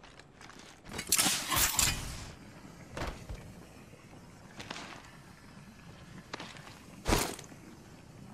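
A gun fires in loud, sharp bursts.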